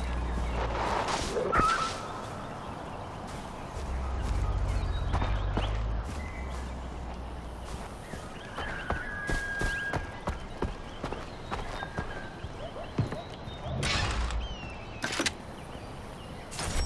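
Footsteps rustle through grass outdoors.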